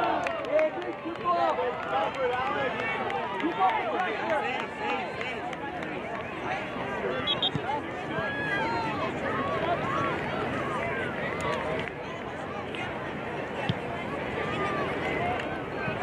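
Young players shout and call out across an open field outdoors.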